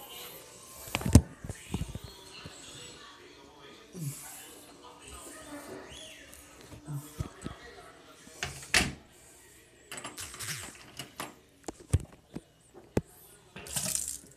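A phone knocks and rubs against something as it is handled.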